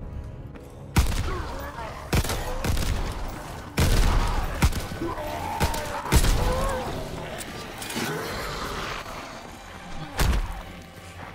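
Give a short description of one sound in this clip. Guns fire in loud, sharp bursts.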